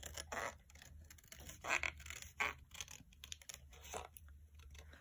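Scissors snip through card.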